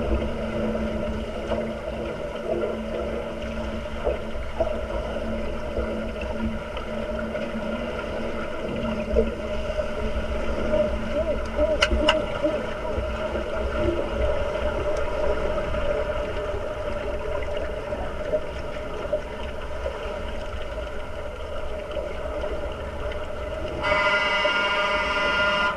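Air bubbles gurgle and burble up through the water.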